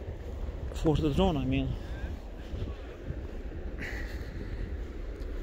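Wind blows and rumbles against the microphone outdoors.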